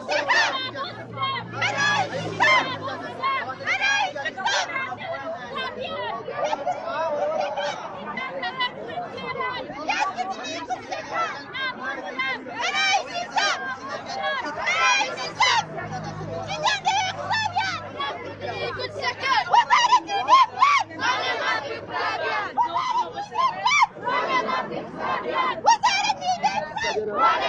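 A crowd of men and women chants and shouts loudly outdoors.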